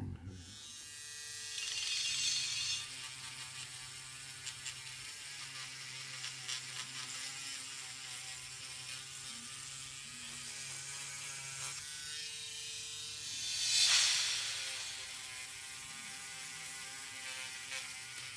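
A small electric sander whines steadily as it sands wood.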